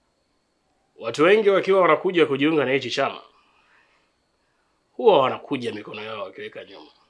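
A middle-aged man speaks close by.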